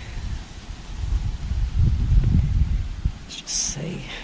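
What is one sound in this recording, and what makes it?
Wind gusts and rustles the leaves of a large tree outdoors.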